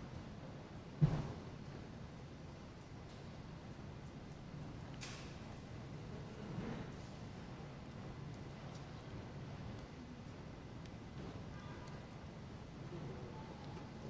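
Footsteps shuffle softly across a hard floor in a large echoing hall.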